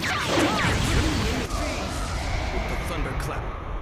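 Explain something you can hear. An energy blast roars loudly.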